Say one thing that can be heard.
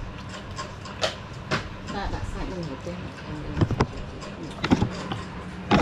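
A spoon scrapes and clinks against a metal bowl.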